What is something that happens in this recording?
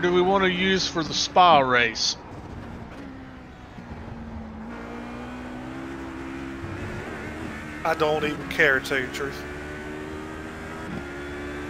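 A racing car engine drones, revving up and down through the gears.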